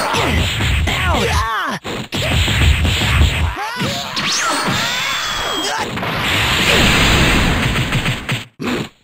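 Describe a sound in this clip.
Punches and kicks land in rapid, heavy thuds.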